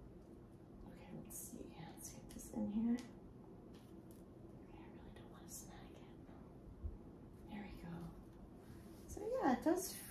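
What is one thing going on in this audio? Nylon stockings rustle under rubbing hands.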